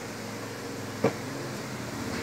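A wooden bat knocks sharply once as it is lifted.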